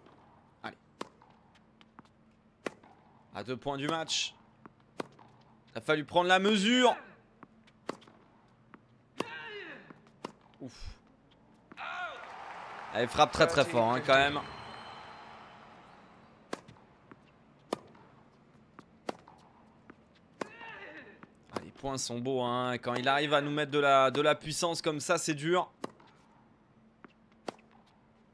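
Sharp pops of a tennis ball being struck by rackets come again and again.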